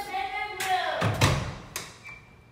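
A door opens with a thud.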